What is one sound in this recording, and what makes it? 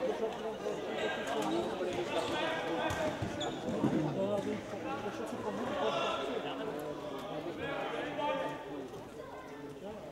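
Young men call out to each other across a large echoing hall.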